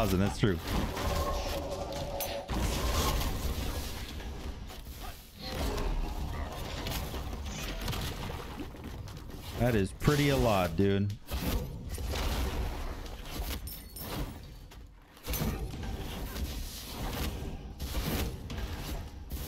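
Fiery magic blasts whoosh and crackle in a fight.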